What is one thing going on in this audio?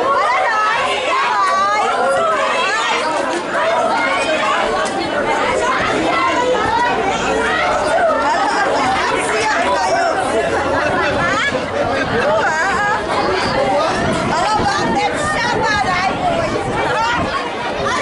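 A crowd of spectators shouts and cheers nearby outdoors.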